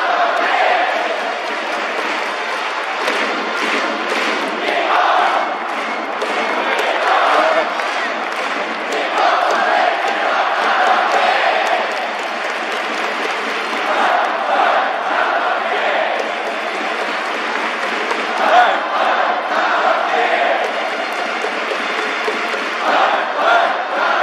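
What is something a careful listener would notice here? A large crowd cheers and chants throughout an echoing stadium.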